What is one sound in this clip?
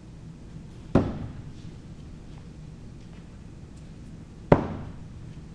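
An axe thuds sharply into a wooden target.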